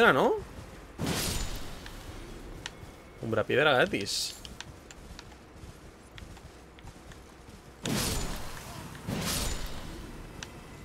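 Sword swings whoosh and clang.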